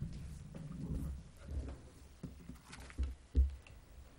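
A man speaks quietly into a microphone.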